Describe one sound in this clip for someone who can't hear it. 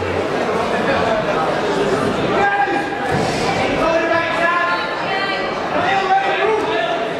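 A crowd of men and women chatter and shout loudly in a large echoing hall.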